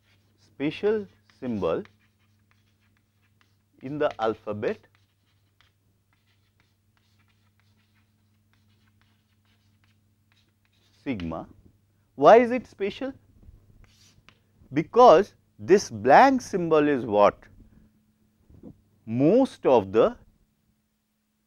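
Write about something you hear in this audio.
A middle-aged man lectures calmly through a clip-on microphone, in short phrases with pauses.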